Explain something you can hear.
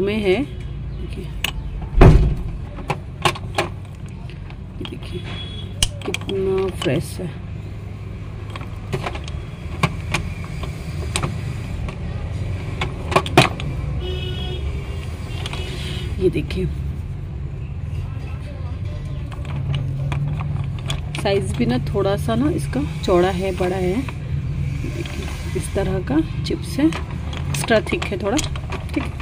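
Clay blocks clack and knock against each other as a hand sorts through them.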